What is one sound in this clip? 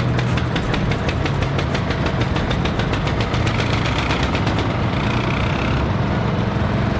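A small engine rattles with rapid ticking as a tractor passes close by.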